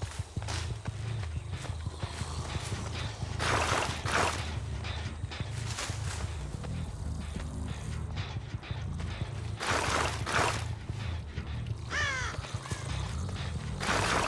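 Heavy footsteps thud steadily.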